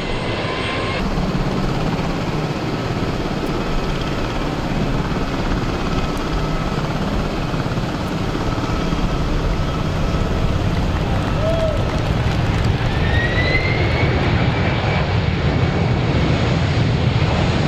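A jet airliner's engines roar loudly as it speeds down a runway close by.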